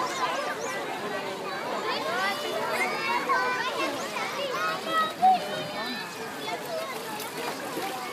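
Many children and adults shout and chatter nearby, outdoors.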